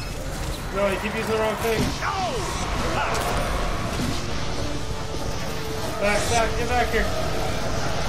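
A young man talks with animation close to a headset microphone.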